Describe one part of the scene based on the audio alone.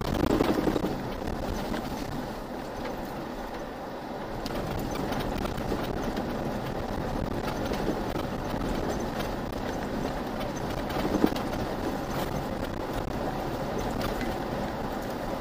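Tyres rumble and crunch over a rough sand track.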